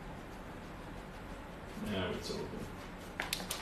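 A paintbrush dabs and brushes against a canvas.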